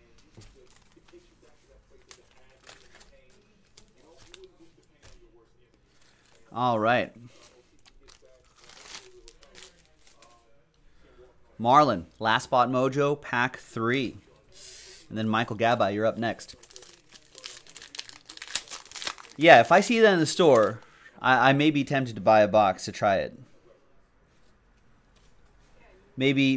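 Plastic card sleeves rustle and click in hands.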